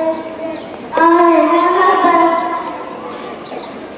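A young girl speaks loudly into a microphone through a loudspeaker.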